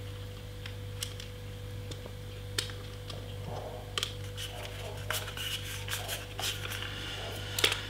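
Small plastic parts click and tap in a man's hands.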